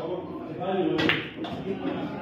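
A cue strikes a ball with a sharp clack.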